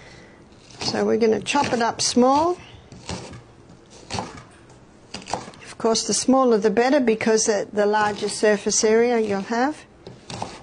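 A knife chops on a cutting board.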